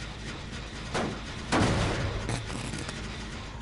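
A motor engine clanks and rattles as it is worked on.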